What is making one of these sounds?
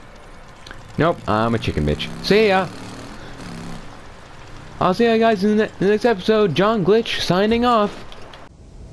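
A motorcycle engine revs up and down while riding.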